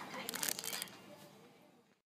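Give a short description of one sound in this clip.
Plastic packaging crinkles close by.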